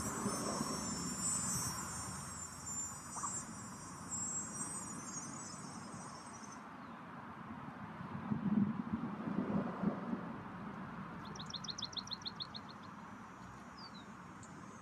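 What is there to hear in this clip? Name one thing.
Geese peck and scratch softly at the dirt ground.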